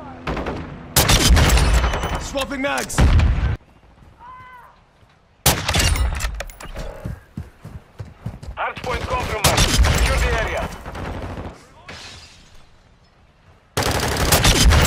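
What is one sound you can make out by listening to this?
A sniper rifle fires loud, sharp shots that crack and echo.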